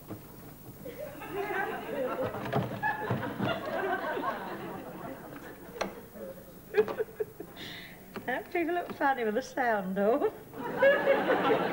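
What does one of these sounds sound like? An older woman talks cheerfully nearby.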